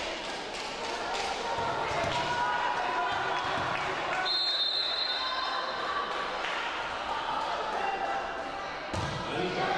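A crowd of players and spectators call out and chatter across the hall.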